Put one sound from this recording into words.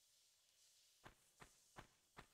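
Footsteps tap steadily on hard stone ground.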